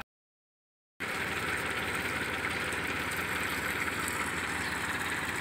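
Water gushes from a pipe and splashes onto the ground.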